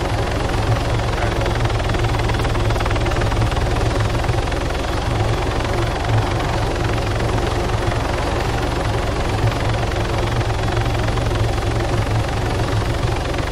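A helicopter's rotor thumps and its engine roars steadily close by.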